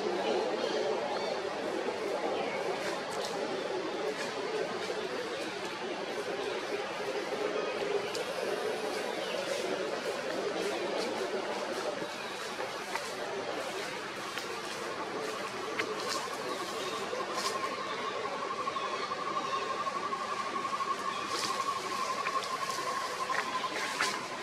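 A baby monkey squeaks softly close by.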